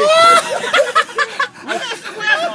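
A young man shouts and laughs loudly close by.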